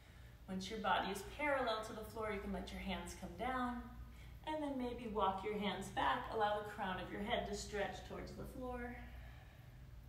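A woman speaks calmly nearby, giving instructions.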